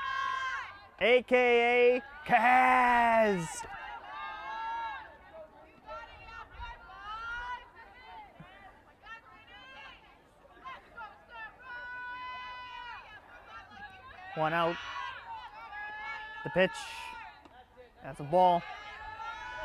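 Young women shout and cheer loudly outdoors.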